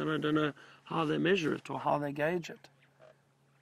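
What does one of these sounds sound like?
A man speaks quietly and closely in a low voice.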